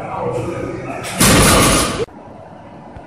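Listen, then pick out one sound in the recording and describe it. Heavy barbell plates thud onto the floor.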